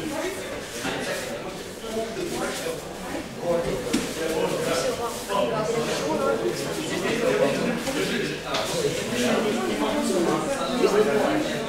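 Young men and women chatter at once in an echoing hall.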